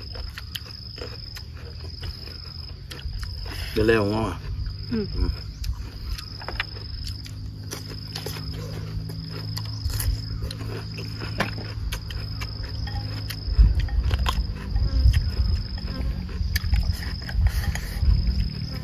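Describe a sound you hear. Two men crunch raw vegetables as they chew.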